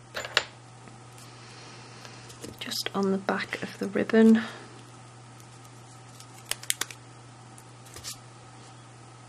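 Adhesive tape peels off a roll with a sticky crackle.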